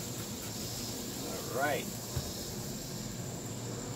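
A spray bottle hisses as it squirts.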